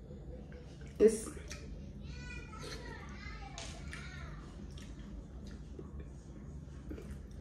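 A young woman chews and crunches food close to the microphone.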